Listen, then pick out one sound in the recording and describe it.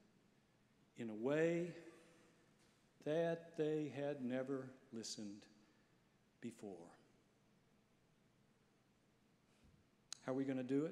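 A middle-aged man speaks with feeling through a microphone in a large echoing hall, with pauses between phrases.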